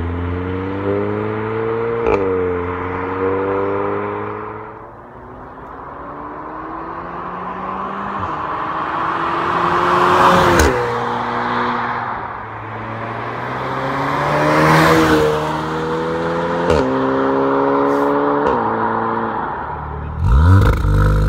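A car engine roars loudly as a car speeds past and fades away.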